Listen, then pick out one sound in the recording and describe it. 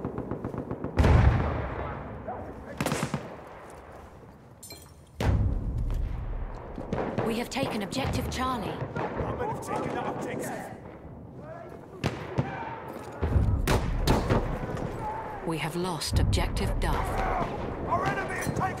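Loud explosions boom nearby.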